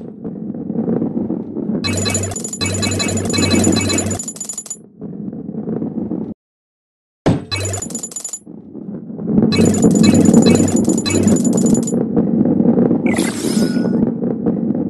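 A ball rolls with a low rumble along a metal track.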